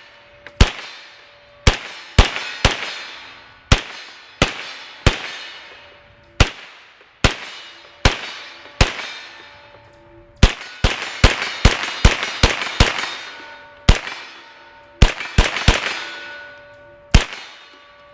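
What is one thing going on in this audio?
A rifle fires sharp shots one after another outdoors, each echoing off into the woods.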